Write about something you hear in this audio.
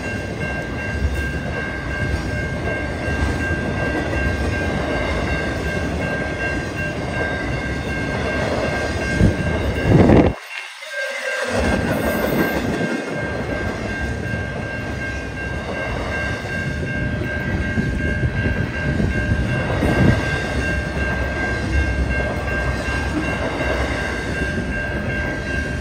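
A freight train of intermodal cars rumbles past with wheels clattering on the rails.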